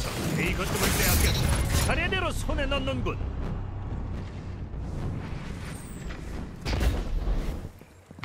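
Heavy weapon blasts and explosions boom in a video game.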